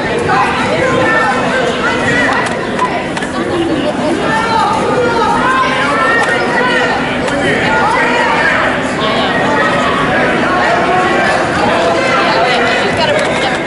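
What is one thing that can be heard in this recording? Wrestling shoes squeak on a mat.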